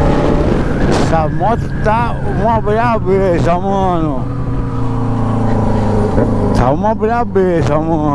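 A motorcycle engine revs up and down sharply as gears shift.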